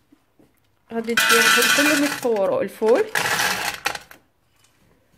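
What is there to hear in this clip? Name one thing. Dried beans rattle as they pour into a metal pot.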